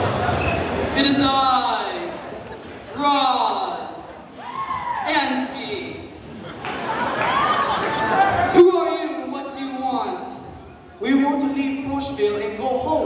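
Young people shout and squeal excitedly close by.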